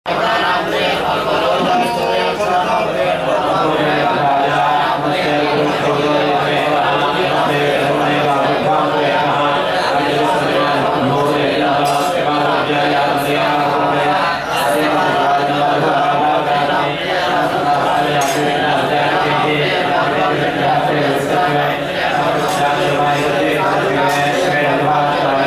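A group of men chant together steadily through a loudspeaker.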